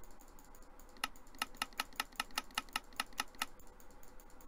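Game menu buttons click quickly, one after another.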